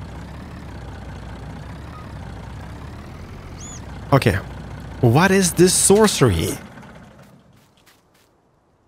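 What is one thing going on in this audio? A truck engine idles with a low, steady rumble, then fades away.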